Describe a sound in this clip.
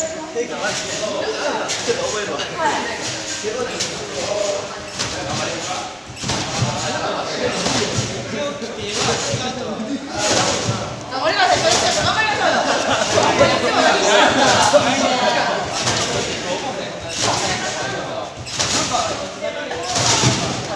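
Young men and women chat and call out in a large echoing hall.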